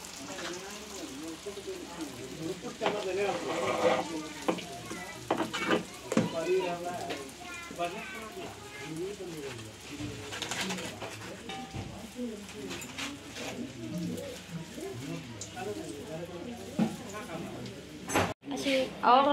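Oil sizzles and bubbles as dough fries.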